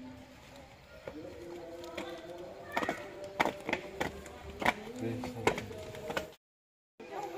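Several people walk on stone steps outdoors.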